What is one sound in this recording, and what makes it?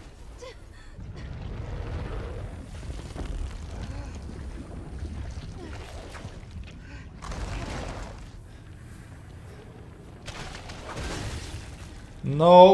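A large creature rumbles and crashes with a deep roar.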